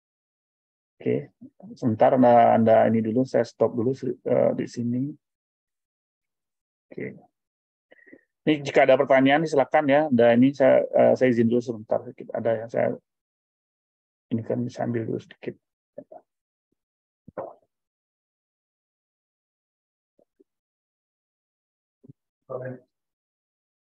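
A middle-aged man talks calmly through an online call.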